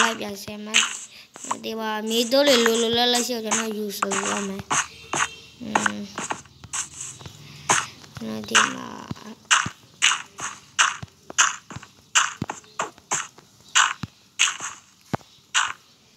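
Dirt crunches in short bursts as blocks are dug out, again and again.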